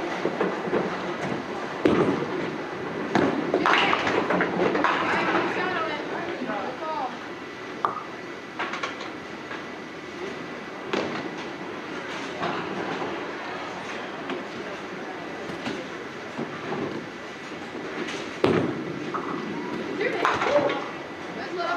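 A bowling ball rolls down a lane and crashes into pins in a large echoing hall.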